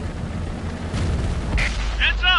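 A shell explodes nearby in the dirt.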